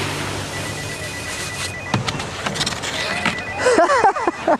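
A snowboard scrapes and hisses across packed snow.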